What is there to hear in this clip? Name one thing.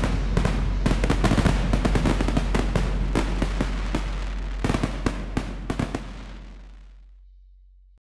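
Fireworks crackle and bang in rapid bursts, then fade away.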